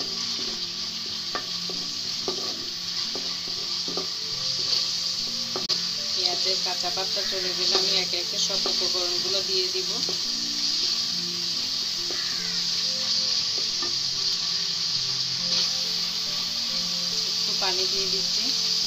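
A wooden spatula scrapes and taps against a metal pan.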